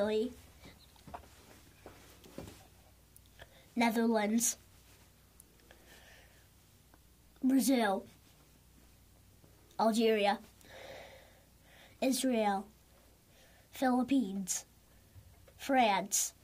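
A young boy calls out short words in bursts, close by.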